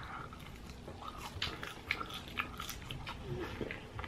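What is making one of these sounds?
A young woman crunches on a crisp snack.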